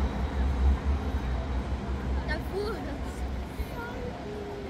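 A tram rumbles past nearby.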